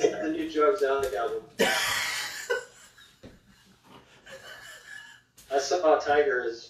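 A man and a woman talk over an online call.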